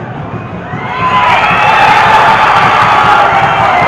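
A crowd cheers loudly in an open stadium.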